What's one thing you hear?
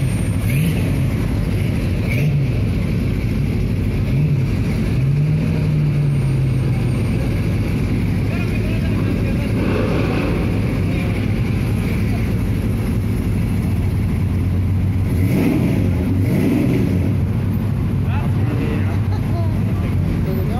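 A car engine idles nearby with a deep, steady rumble.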